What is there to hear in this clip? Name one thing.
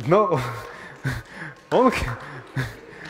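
A man laughs heartily through a headset microphone.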